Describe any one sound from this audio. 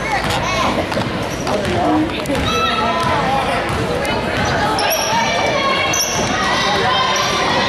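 Sneakers squeak sharply on a hard court in an echoing gym.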